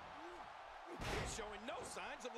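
A heavy body slams down onto a wrestling ring with a thud.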